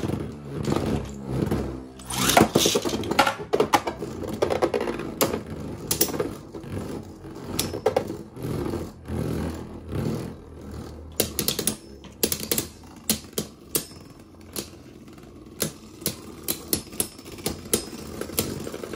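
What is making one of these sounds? Spinning tops whir steadily on a plastic dish.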